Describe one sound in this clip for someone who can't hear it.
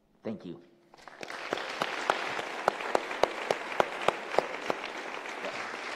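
An audience applauds loudly.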